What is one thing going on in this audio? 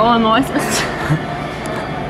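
A young woman giggles close by.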